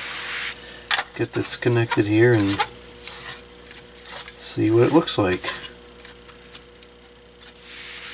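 A light bulb scrapes as it is screwed into a porcelain socket.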